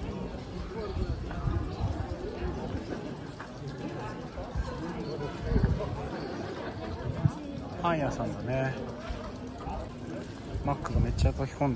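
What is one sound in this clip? People chat at nearby tables outdoors.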